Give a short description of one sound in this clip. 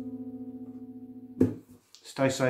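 A guitar chord rings out and is cut short.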